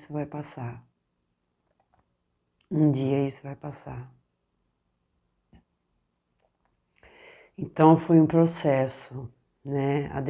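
A middle-aged woman speaks calmly and close by, with pauses.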